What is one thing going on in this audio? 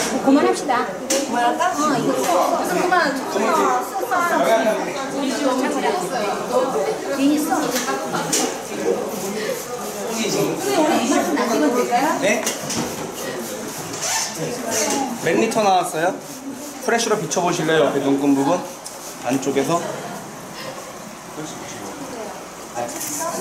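Several men and women talk and chatter nearby.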